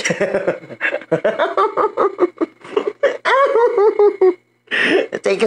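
A man laughs hard into a close microphone.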